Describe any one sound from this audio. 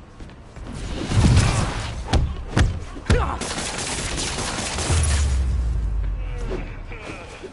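Heavy blows and thuds land in a fight.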